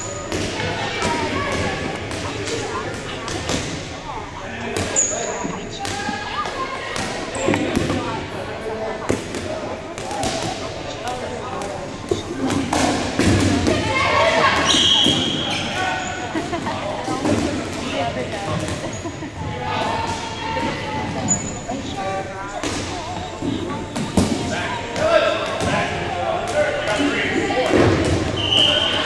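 Several young men shout and call out to each other across a large echoing hall.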